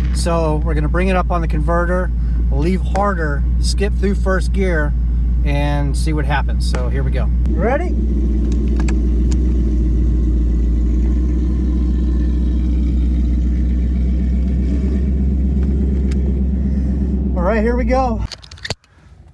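A car engine rumbles deeply and steadily up close, then cuts off.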